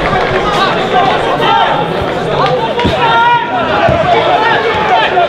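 A small outdoor crowd of spectators chatters and calls out.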